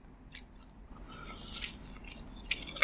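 A woman bites into a soft pastry close to a microphone.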